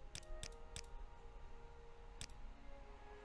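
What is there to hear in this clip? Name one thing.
Soft game menu clicks sound a few times.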